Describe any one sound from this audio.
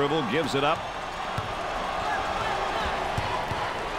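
A basketball thumps as it is dribbled.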